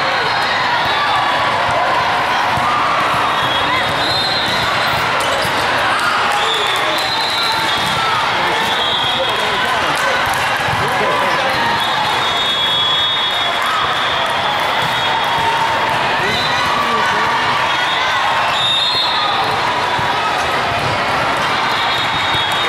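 Young women call out to each other on the court.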